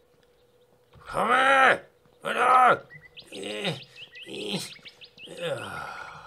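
A wild animal squeals and grunts.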